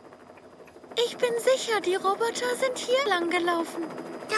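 A young girl speaks with animation.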